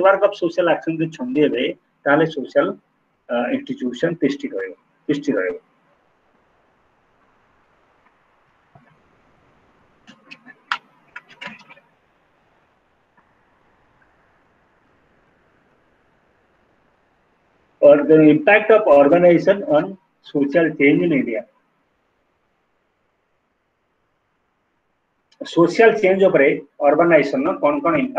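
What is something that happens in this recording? A man speaks calmly over an online call, in bursts with long pauses.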